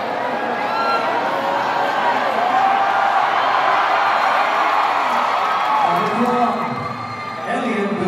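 A large crowd cheers and whistles in an echoing hall.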